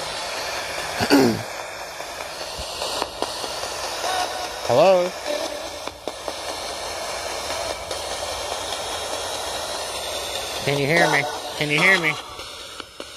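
Brief snatches of voices break through a small radio speaker.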